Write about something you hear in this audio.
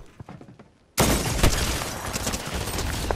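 Gunshots crack loudly in rapid bursts.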